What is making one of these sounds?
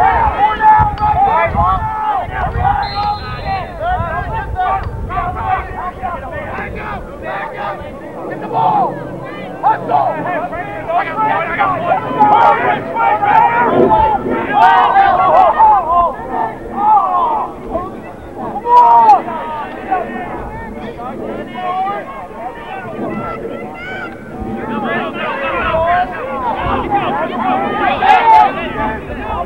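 A crowd of young men and spectators cheer and shout outdoors.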